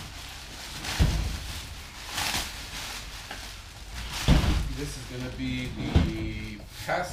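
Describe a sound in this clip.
A heavy object thumps down on a hard surface.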